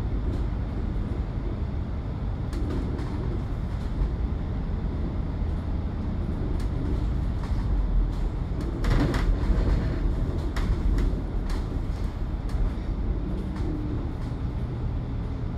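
Cars pass by on a road.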